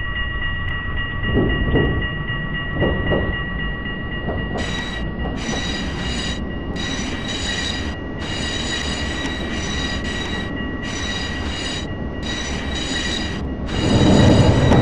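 A tram rolls along rails with a steady electric motor whine.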